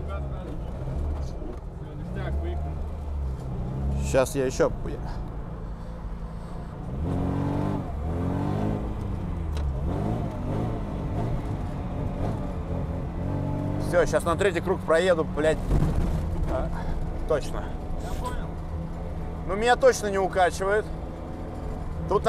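A car engine revs hard and roars.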